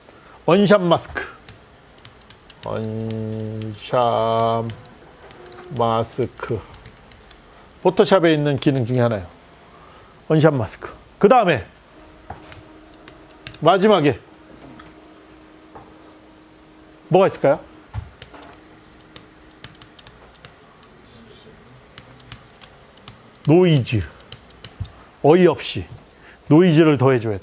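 A middle-aged man speaks calmly, with pauses.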